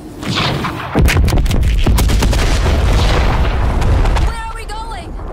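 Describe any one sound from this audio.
A huge explosion booms and roars with a deep rumble.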